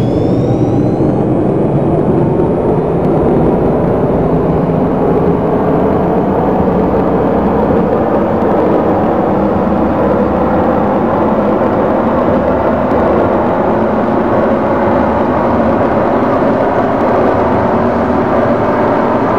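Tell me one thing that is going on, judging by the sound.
Train wheels rumble steadily on the rails.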